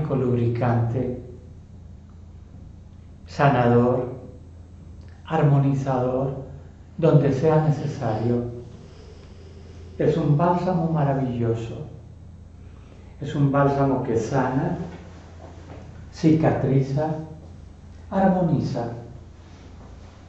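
An elderly man speaks calmly close by, in short phrases with pauses.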